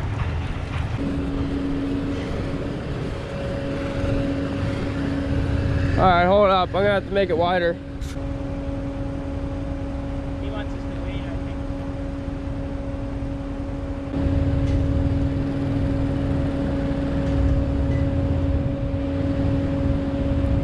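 A small utility vehicle's engine hums steadily.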